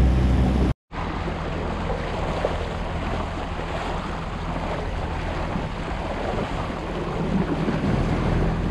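Water laps gently against a drifting boat.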